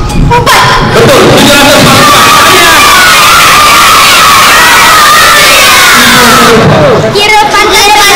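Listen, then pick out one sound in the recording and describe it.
A large crowd of children shouts and cheers in an echoing hall.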